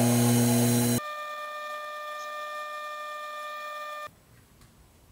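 A drill bit in a small metal lathe bores into brass.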